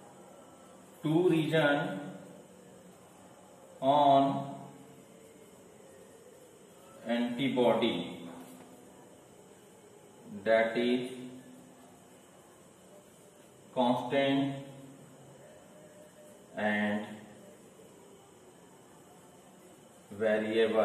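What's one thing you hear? A man speaks calmly in short phrases with long pauses between them.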